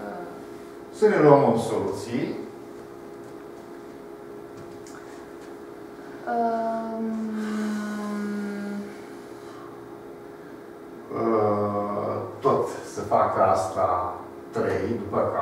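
An elderly man speaks calmly, explaining.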